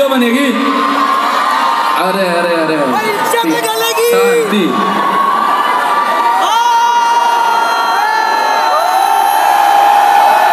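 A man sings into a microphone through loud speakers, heard from within a crowd.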